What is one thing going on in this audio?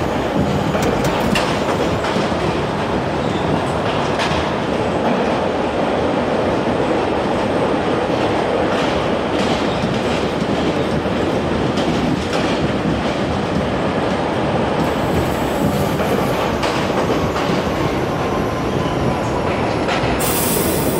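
Train wheels clack over rail joints now and then.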